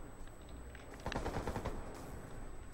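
Rapid gunshots rattle in a quick burst.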